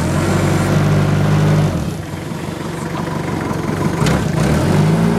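A forklift engine rumbles close by, dropping and rising in pitch.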